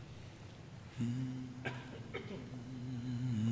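A man chants in a steady voice through a microphone in a large echoing hall.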